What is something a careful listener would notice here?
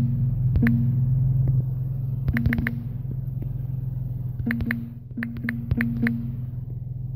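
A phone keyboard clicks with quick taps.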